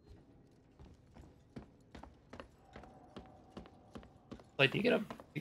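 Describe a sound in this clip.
Footsteps climb metal stairs at a steady pace.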